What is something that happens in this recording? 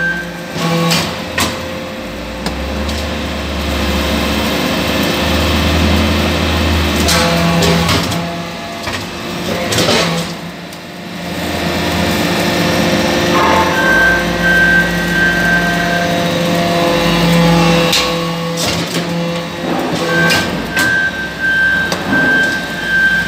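A hydraulic press hums and whines loudly throughout.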